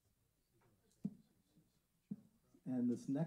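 A small wooden block knocks sharply twice.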